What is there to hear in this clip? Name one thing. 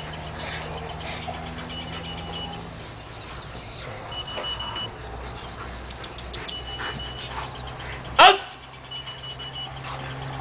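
A man gives short commands outdoors.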